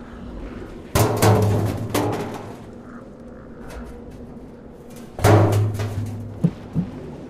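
A metal canister clanks and scrapes as it is handled.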